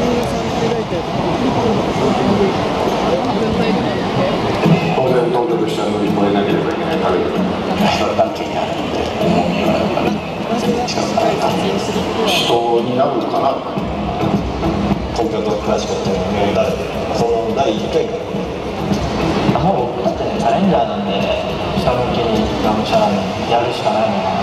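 A large crowd chants and sings loudly in an open stadium.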